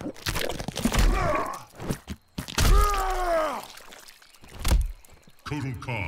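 Flesh tears and squelches with heavy, wet thuds.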